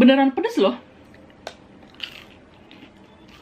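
A young woman chews food close to a microphone.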